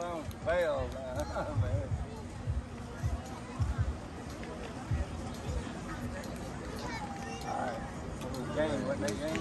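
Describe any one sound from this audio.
Young women shout and cheer from the sidelines, heard outdoors at a distance.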